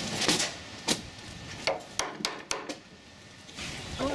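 A hammer taps sharply on a chisel.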